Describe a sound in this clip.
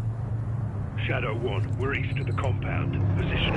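A man speaks urgently.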